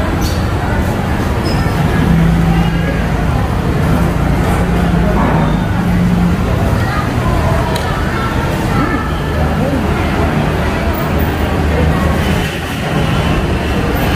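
Several people chatter nearby.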